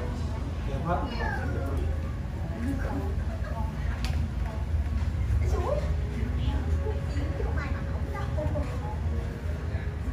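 A middle-aged woman speaks softly close by.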